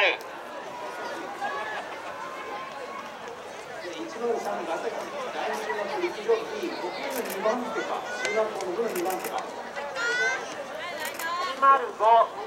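A crowd of people shout and cheer outdoors.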